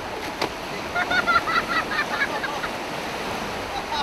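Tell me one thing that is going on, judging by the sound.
Water splashes as a man falls into the shallow surf.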